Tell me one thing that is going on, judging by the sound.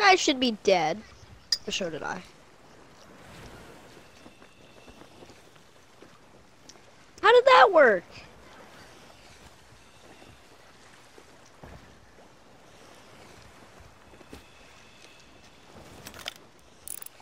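Sea waves wash softly in the distance.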